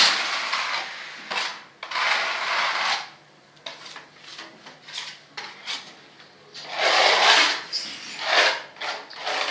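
A putty knife scrapes and smears plaster on a wall in bursts.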